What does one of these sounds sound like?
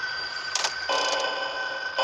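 Loud crackling static hisses.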